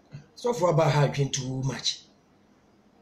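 A man speaks calmly close to the microphone.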